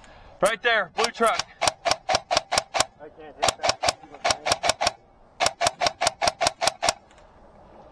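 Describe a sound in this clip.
A paintball gun fires a rapid string of sharp pops.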